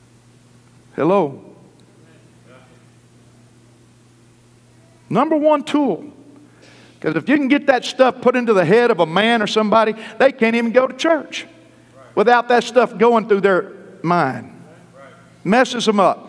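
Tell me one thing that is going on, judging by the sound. A man preaches with animation through a microphone in a large echoing hall, pausing between phrases.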